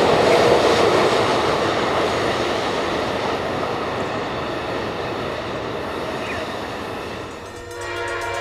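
A train rumbles along its tracks in the distance.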